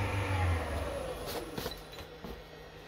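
A lathe motor winds down and stops.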